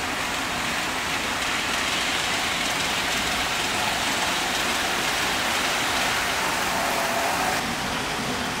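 A model train rumbles and hums along its track.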